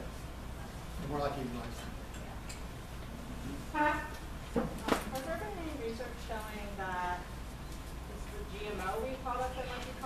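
A man speaks calmly to an audience in a room with some echo.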